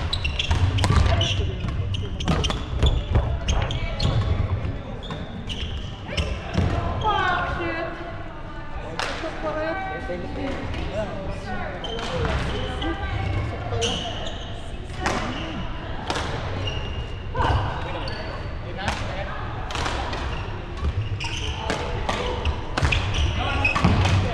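Badminton rackets strike shuttlecocks with sharp pops in a large echoing hall.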